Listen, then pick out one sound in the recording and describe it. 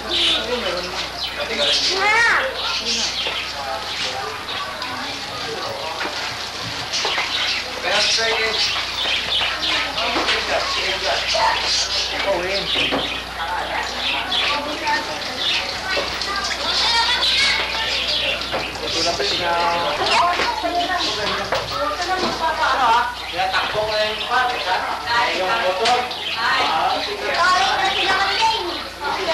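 Several people talk and chatter nearby in a lively group.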